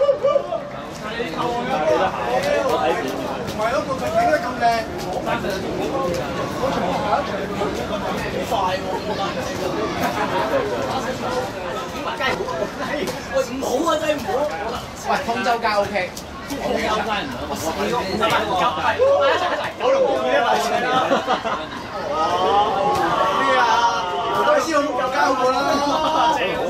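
Several young men talk and call out to each other nearby.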